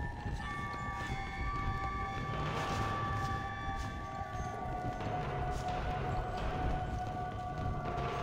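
Footsteps thud on wooden floorboards indoors.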